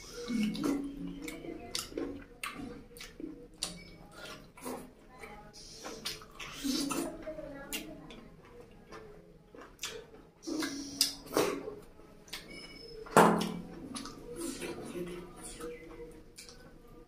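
A man chews food loudly and smacks his lips close to a microphone.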